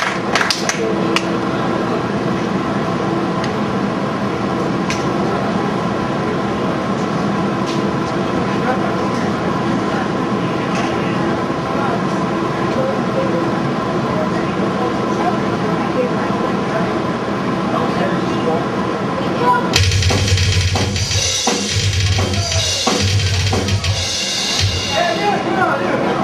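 Electric guitars roar with heavy distortion.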